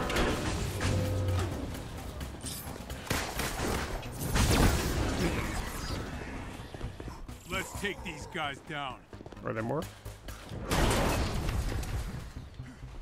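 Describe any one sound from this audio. Game explosions and combat effects boom and crash.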